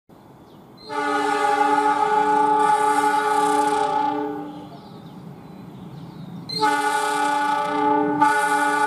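A locomotive horn blares loudly in long blasts.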